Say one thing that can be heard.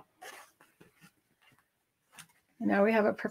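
Fabric rustles as it is handled.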